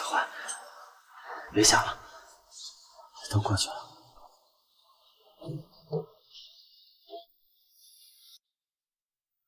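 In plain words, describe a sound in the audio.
A young woman sobs and whimpers close by.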